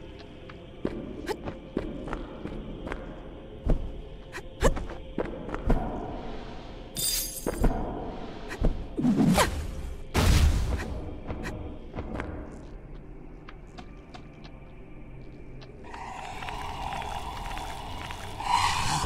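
Dark game music plays throughout.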